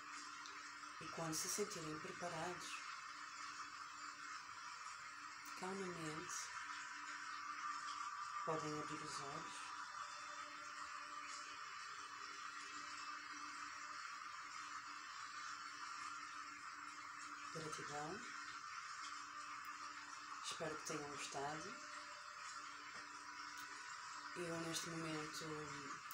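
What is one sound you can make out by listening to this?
A young woman speaks softly and calmly in short phrases, close to a microphone.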